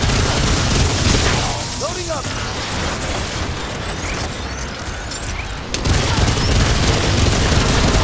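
A gun fires repeated shots.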